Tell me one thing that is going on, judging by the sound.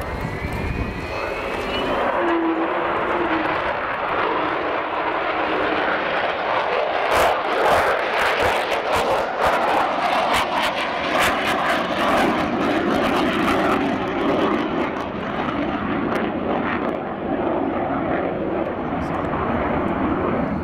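A jet bomber roars loudly overhead, its engines rumbling and howling as it passes.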